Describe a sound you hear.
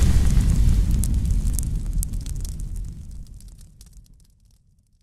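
Embers crackle and pop.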